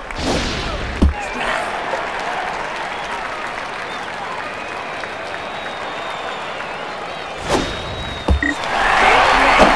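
A crowd murmurs steadily in a large stadium.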